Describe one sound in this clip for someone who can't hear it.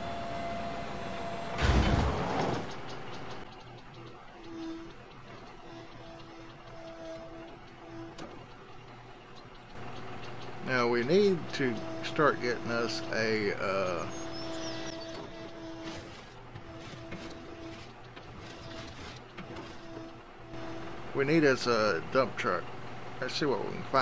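A backhoe loader's diesel engine idles.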